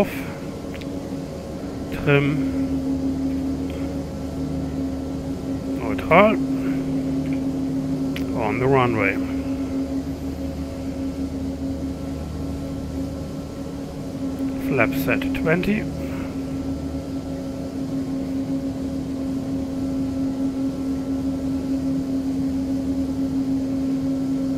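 Aircraft engines hum steadily from inside a cockpit.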